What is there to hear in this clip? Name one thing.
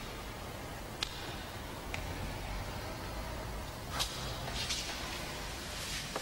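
Footsteps echo across a large, hollow hall.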